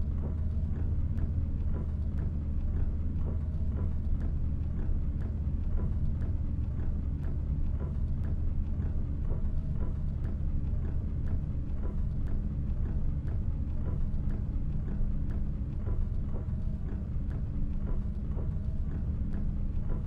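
A bus engine hums low and steady.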